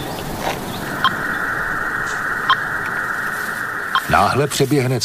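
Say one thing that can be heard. A radio receiver gives out a steady electronic tone.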